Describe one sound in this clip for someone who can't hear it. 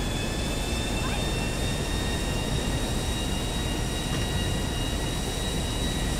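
Jet engines roar steadily overhead.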